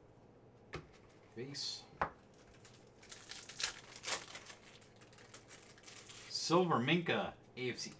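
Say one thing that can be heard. Trading cards flick and rustle as they are shuffled.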